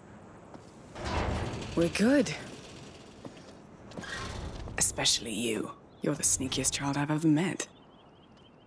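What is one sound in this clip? A woman speaks calmly and warmly, close by.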